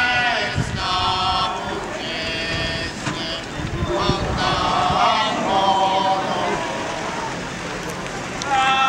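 A group of men sings a slow, mournful chant outdoors.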